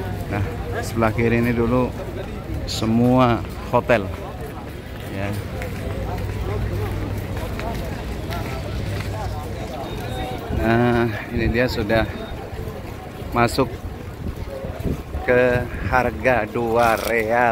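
A man talks close by with animation.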